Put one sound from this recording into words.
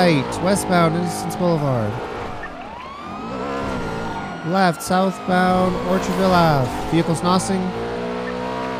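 A police siren yelps and wails in quick bursts.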